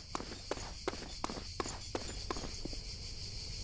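Footsteps run quickly over gravel.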